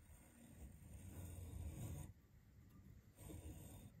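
A metal die wrench creaks and clicks as it turns.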